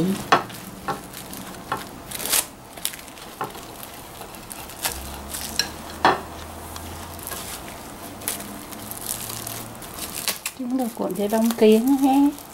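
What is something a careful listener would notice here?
Plastic wrap crinkles and crackles in short bursts.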